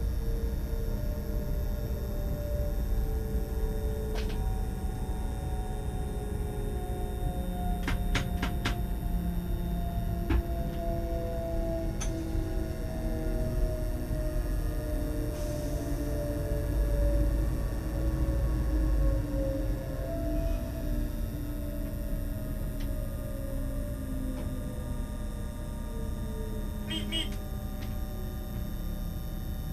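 An electric train motor whines, slowly falling in pitch as the train slows.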